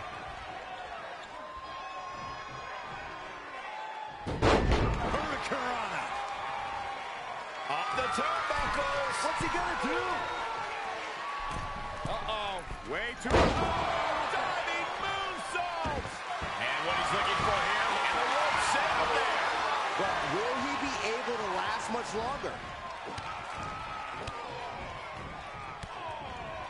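A crowd cheers and roars throughout in a large arena.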